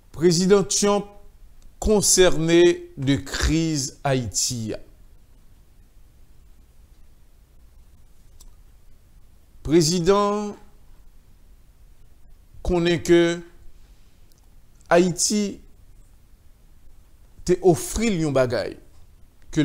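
A middle-aged man speaks calmly and clearly into a microphone, in short phrases with long pauses.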